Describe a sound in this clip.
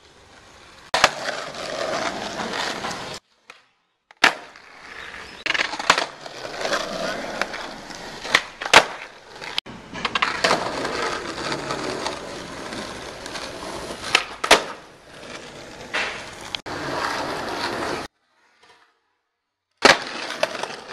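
A skateboard deck snaps and clacks sharply against the ground.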